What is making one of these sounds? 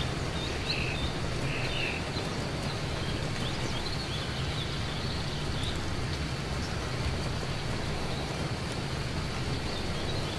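Steady rain falls outdoors.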